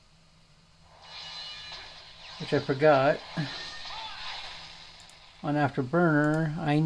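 Video game sounds play from a small laptop speaker.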